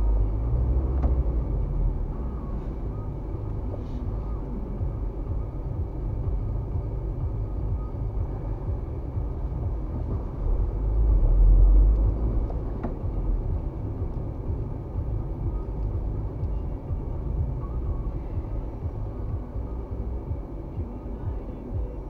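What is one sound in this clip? Tyres roll over the road surface with a low rumble.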